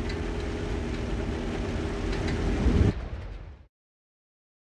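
A tank engine rumbles steadily, then fades away.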